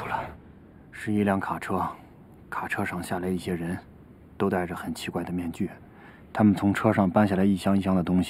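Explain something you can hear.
A man speaks calmly and seriously, close by.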